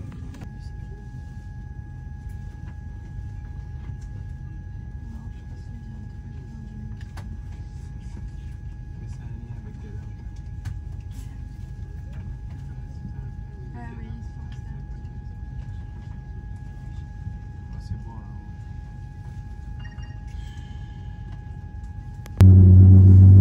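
A low, steady rumble drones inside an aircraft cabin.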